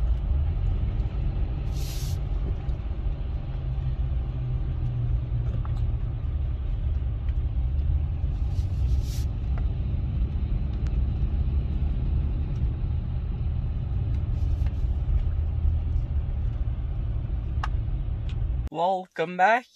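A car engine rumbles low and steady as tyres roll over a road.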